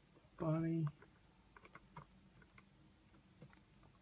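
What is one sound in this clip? Hands handle a small plastic figure with soft clicks and rustles.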